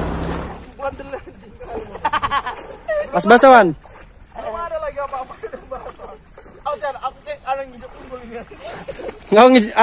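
Water splashes as boys wade.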